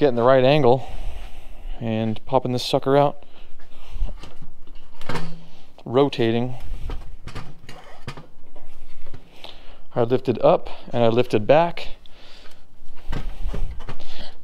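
Metal parts of a motorcycle engine knock and clank as they are handled.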